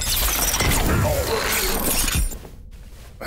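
A heavy metal chain clanks and rattles.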